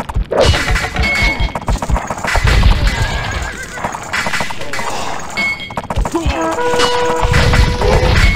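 Swords clang and clash in a battle.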